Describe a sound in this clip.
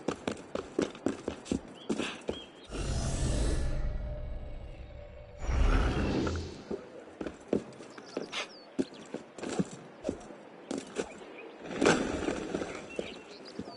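Footsteps patter quickly across roof tiles.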